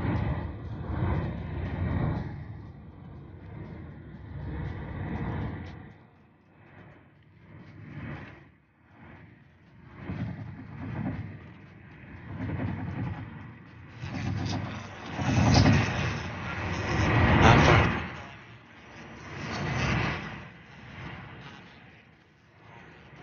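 Road noise from a car driving along a highway rumbles from inside the car, rising and falling.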